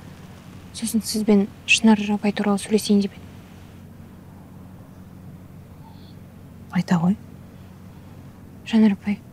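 A young woman speaks calmly and seriously, close by.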